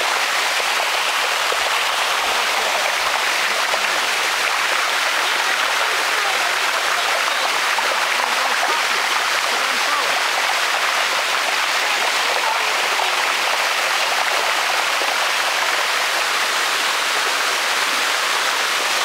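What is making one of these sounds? Water rushes steadily over rocks in a stream.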